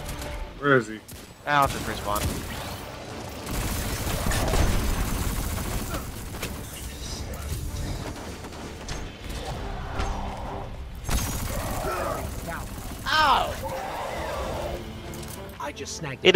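Video game gunfire cracks in rapid bursts.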